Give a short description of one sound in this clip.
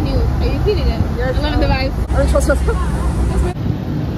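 A young woman talks excitedly up close.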